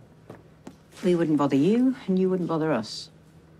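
A woman speaks calmly and quietly, close by.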